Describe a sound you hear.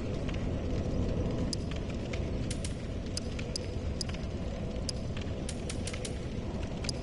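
Short menu ticks sound as a selection moves through a list.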